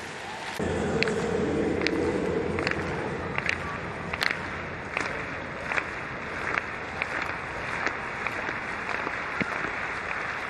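Hands clap slowly in a steady rhythm.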